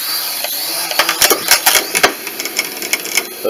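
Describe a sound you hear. A drone bumps and knocks against the floor and wall.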